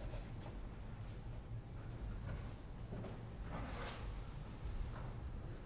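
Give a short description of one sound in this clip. Footsteps tread slowly down stairs.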